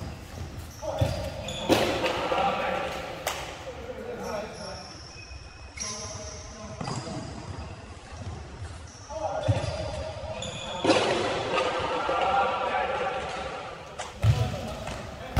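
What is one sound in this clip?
A ball is kicked and thuds on the floor.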